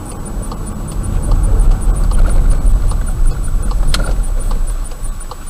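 Tyres rumble onto a rougher roadside surface as a car slows down.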